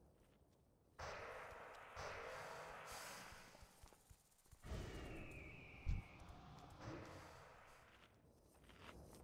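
Spell blasts and weapon strikes crackle during a fight.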